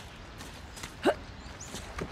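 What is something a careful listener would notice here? A young woman grunts with effort.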